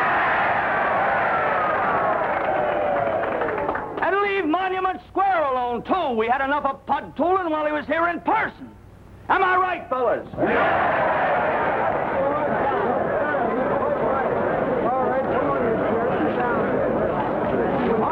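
A large crowd cheers and applauds loudly.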